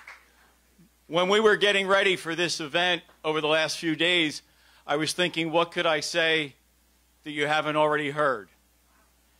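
A man speaks calmly into a microphone over a loudspeaker.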